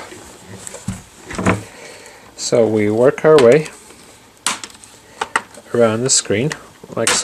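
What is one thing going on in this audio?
Plastic parts of a laptop click and snap as hands work on it.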